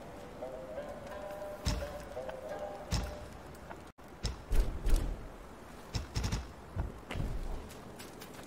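Game menu selections click and chime.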